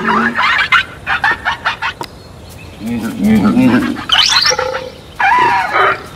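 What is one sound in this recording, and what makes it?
Creatures screech and growl as they fight.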